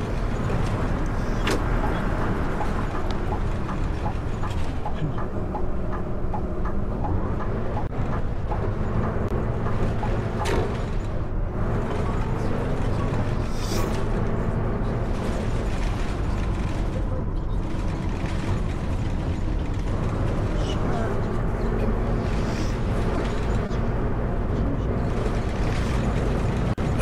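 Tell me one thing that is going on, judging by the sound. A heavy bus engine rumbles steadily and shifts in pitch as it speeds up and slows down.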